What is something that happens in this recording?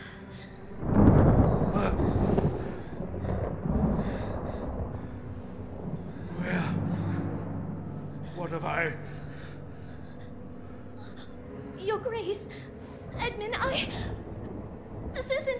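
A man speaks in a deep, stern voice.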